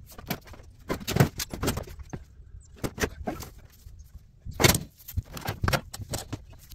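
Wooden furniture bumps and knocks as a man shifts it.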